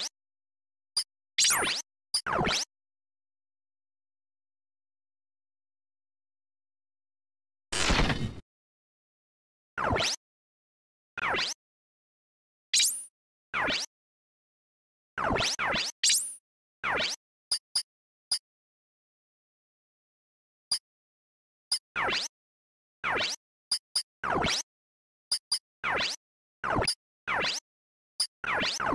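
Short electronic menu blips and chimes sound again and again as options are picked.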